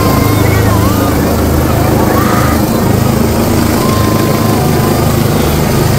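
Strong wind from the rotor blasts past.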